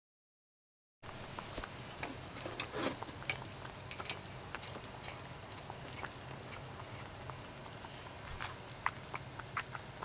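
Metal parts of a lantern clink and rattle as they are handled.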